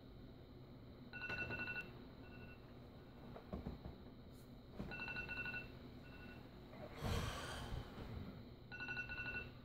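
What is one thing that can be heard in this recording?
Bedding rustles as a man shifts in bed.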